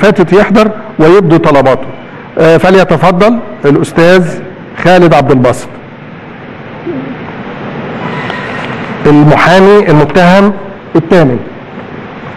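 An elderly man speaks calmly and formally into a microphone.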